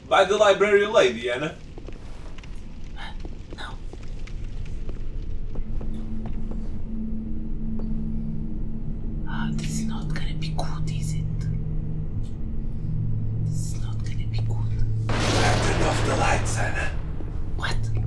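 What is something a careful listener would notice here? A young woman speaks with animation into a close microphone.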